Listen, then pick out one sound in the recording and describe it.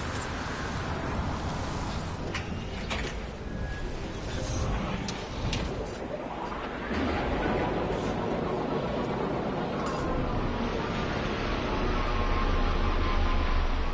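A spaceship engine roars steadily and grows louder as it lifts off.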